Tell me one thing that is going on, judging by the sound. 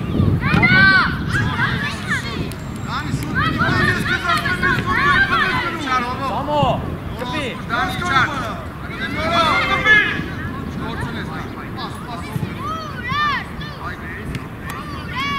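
Young boys shout and call out to each other across an open field.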